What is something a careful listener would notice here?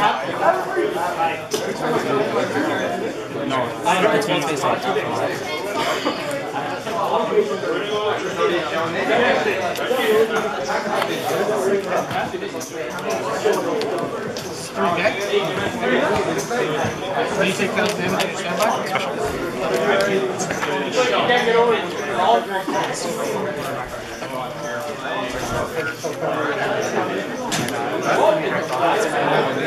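Young men talk back and forth close by.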